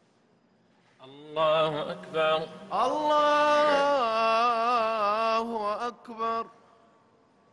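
A man chants a long, drawn-out call through loudspeakers in a large echoing space.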